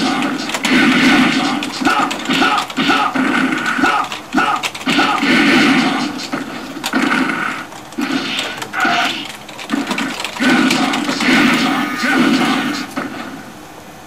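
Punches and kicks land with heavy thuds.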